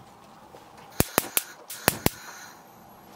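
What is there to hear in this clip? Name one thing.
A gas stove igniter clicks several times.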